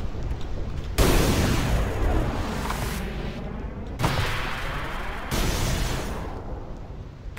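A loud blast roars and slowly fades.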